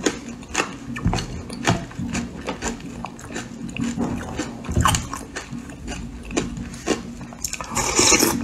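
A spoon scrapes and clinks against a ceramic bowl.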